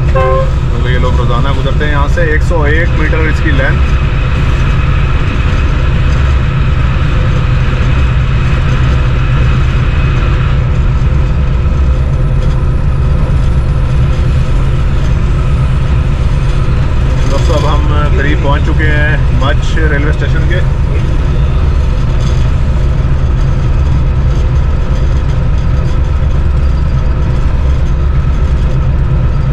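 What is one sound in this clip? Train wheels clatter along the rails.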